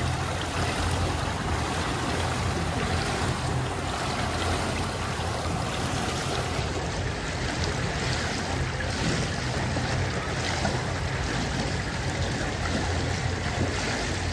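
Water splashes and laps as a man wades in and swims.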